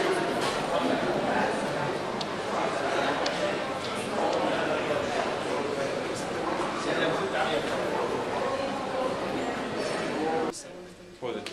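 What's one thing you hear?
Many voices murmur in an echoing hall.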